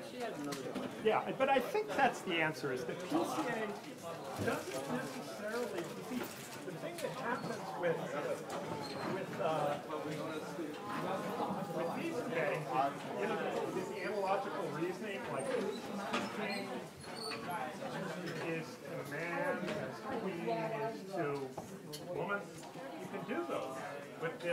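An elderly man talks calmly in a roomy hall.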